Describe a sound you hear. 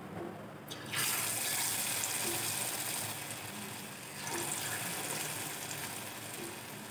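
Food sizzles and bubbles loudly in hot oil.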